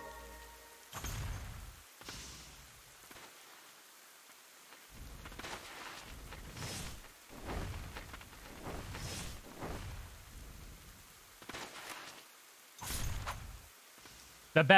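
Sword swipes and hits whoosh and thud in quick bursts.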